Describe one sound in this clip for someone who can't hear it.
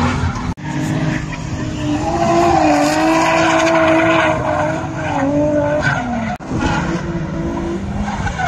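Car tyres screech on asphalt.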